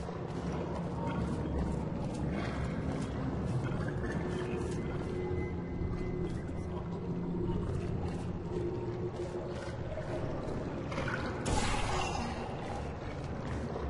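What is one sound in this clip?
A low electronic hum drones steadily.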